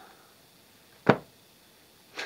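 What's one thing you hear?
A book is set down on a carpet with a soft thud.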